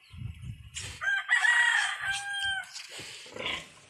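Piglets squeal sharply nearby.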